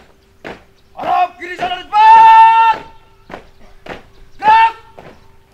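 A young man shouts loud marching commands.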